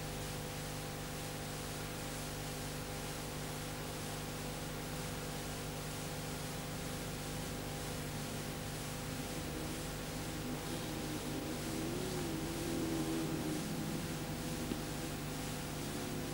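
Race car engines roar and rev in the distance.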